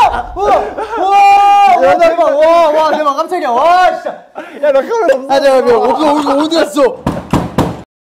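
A young man exclaims loudly in surprise close by.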